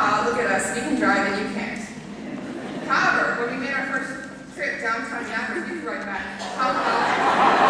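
A young woman speaks with animation through a microphone in a large hall.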